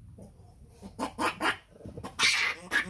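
A young monkey shrieks loudly in short bursts.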